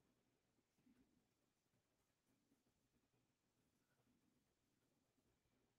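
A man speaks quietly and calmly into a close microphone.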